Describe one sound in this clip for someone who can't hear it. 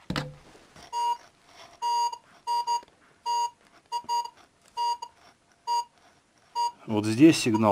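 A metal detector beeps in short, repeated tones.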